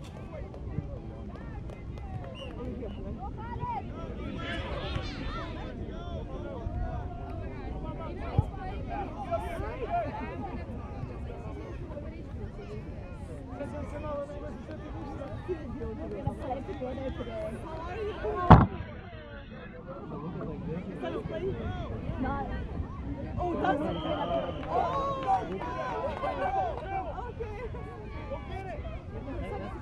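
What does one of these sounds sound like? A crowd of adults and children chatter outdoors.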